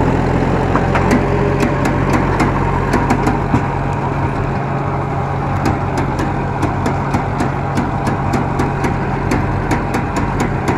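A seed drill clatters as it works through the soil.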